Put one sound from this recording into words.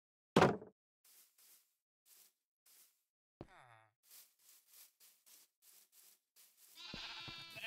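Footsteps pad across grass.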